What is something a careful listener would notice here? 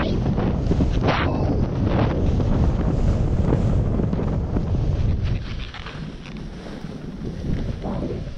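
Skis hiss and scrape through soft snow.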